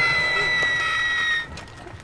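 A fire crackles in a barrel.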